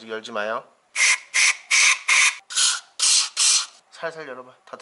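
A spray can hisses in short, quick bursts.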